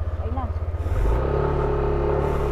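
A motorcycle engine revs up and holds a higher hum.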